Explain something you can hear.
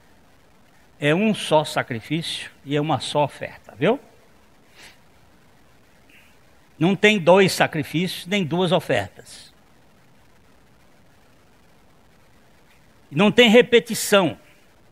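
A middle-aged man speaks with animation through a lapel microphone, pausing between phrases.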